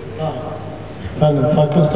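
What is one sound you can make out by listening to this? An elderly man chants into a microphone, heard through a loudspeaker.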